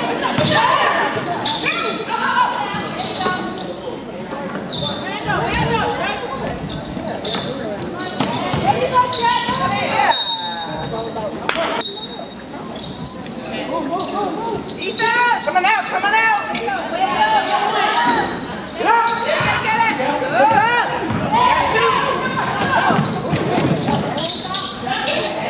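Spectators, mostly young women, chatter and call out in a large echoing hall.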